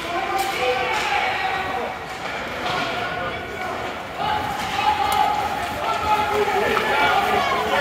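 Young players shout to each other across the ice.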